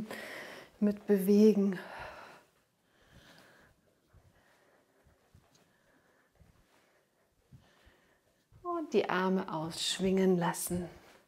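Bare feet shuffle softly on a mat.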